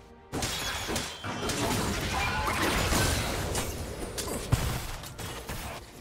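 Game spell effects whoosh and clash in a busy fight.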